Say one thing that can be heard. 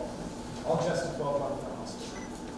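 A young woman speaks softly in a room that echoes.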